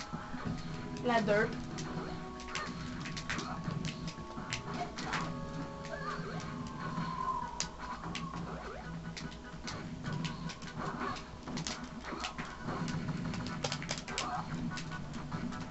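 Upbeat video game music plays from a television speaker.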